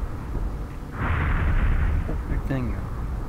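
A fireball bursts with a loud roaring whoosh.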